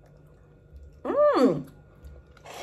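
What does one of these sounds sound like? A young woman hums in delight.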